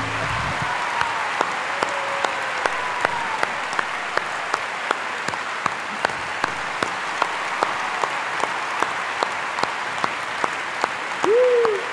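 Hands clap together in a steady rhythm.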